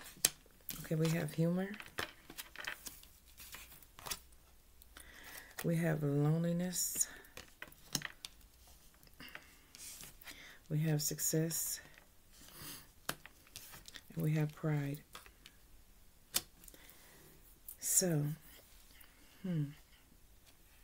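A woman speaks calmly and close by, in short phrases.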